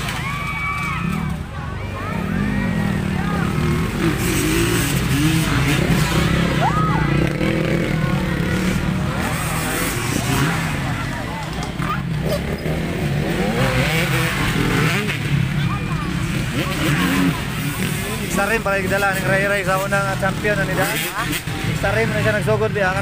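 Motorcycle engines rev and whine in the distance.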